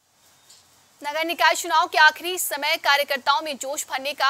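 A young woman reads out news clearly into a microphone.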